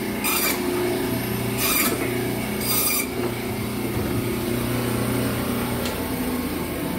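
A band saw whirs steadily as it cuts through meat and bone.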